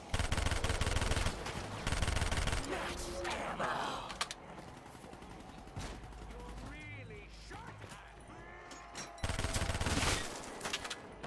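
Rapid gunfire blasts in loud bursts.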